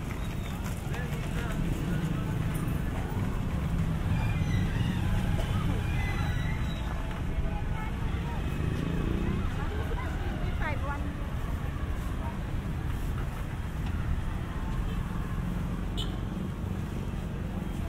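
Men and women chatter faintly nearby.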